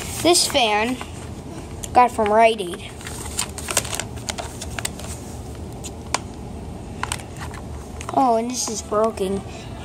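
A plastic fan casing knocks and rattles as it is handled.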